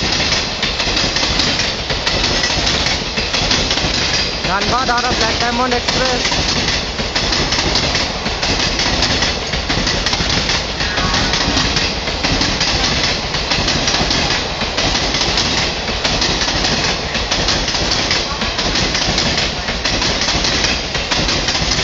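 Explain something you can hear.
A train rumbles steadily past at close range.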